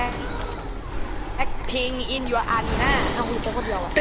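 A car crashes into a parked car with a metal bang.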